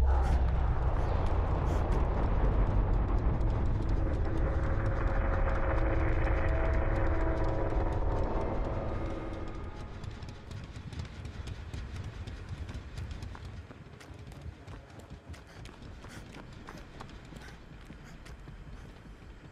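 Footsteps run quickly across the ground.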